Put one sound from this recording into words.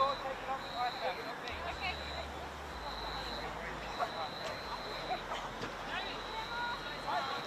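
Players shout to each other across an open field in the distance.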